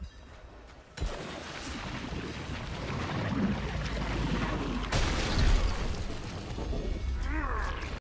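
Loud rumbling combat noises swell and crash.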